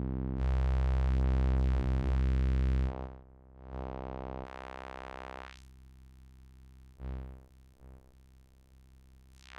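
A synthesizer drones with a buzzy tone that swells, filters and fades.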